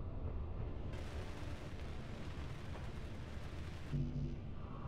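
A welding tool hisses steadily.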